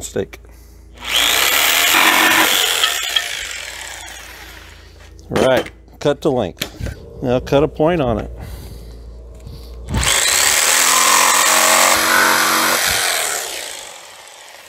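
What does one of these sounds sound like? A jigsaw buzzes loudly as it cuts through wood.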